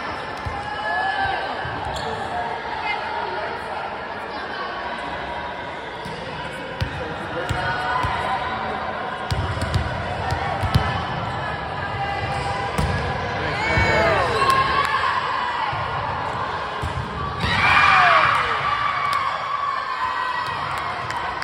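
Young girls shout and cheer in a large echoing gym.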